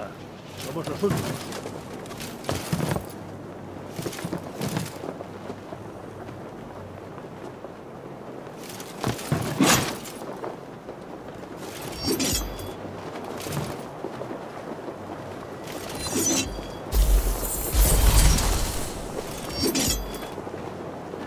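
Metal armour and a sword clank and strike in short bursts.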